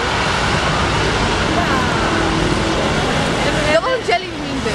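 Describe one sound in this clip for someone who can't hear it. Busy city street noise rumbles steadily with traffic and crowd.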